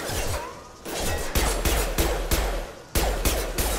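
Pistol shots fire in quick bursts, loud and close.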